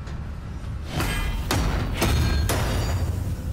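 Heavy metal slabs slam and clang into place.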